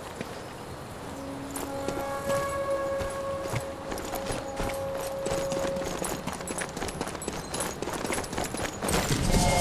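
Footsteps run over stone.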